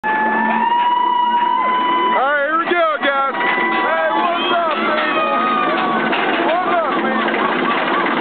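Young riders on a roller coaster scream and whoop excitedly.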